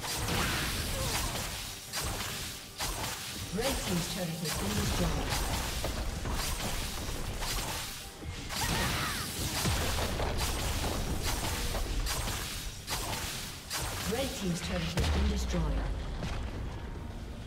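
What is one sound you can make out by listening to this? Magic blasts and clashing weapons of a fantasy battle crackle and boom throughout.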